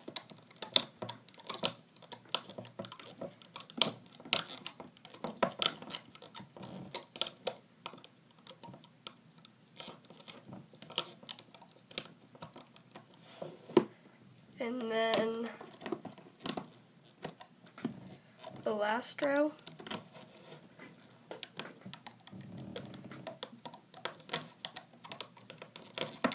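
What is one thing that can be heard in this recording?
Rubber bands click and snap against a plastic loom as a hook pulls them.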